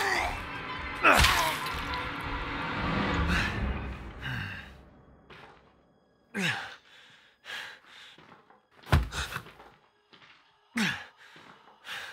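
A young woman cries out and groans in short bursts.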